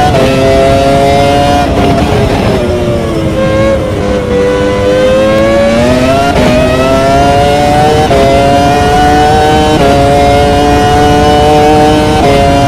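A racing car engine screams at high revs, dropping in pitch on braking and rising again with each gear change.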